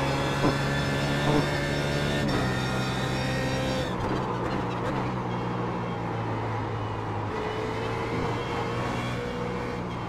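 A race car engine roars steadily at high revs, shifting pitch as the car brakes and accelerates.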